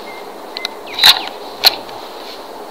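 A small pistol fires two sharp shots outdoors.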